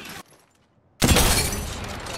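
A rifle fires a single loud, sharp shot.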